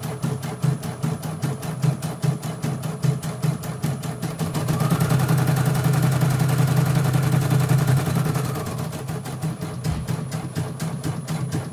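An embroidery machine whirs and stitches with a rapid, steady tapping, humming louder for a few seconds midway.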